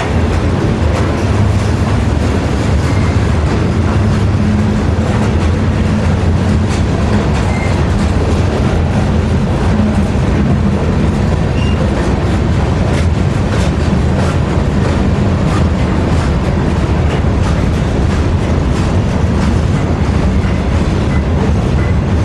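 A long freight train rumbles steadily past, close by.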